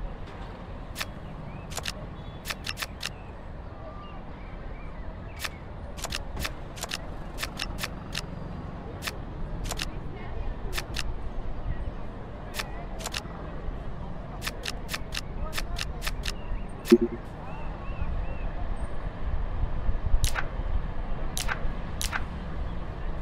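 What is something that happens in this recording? Playing cards snap into place with short, sharp clicks.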